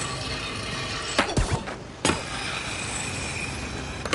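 A skateboard grinds along a metal edge.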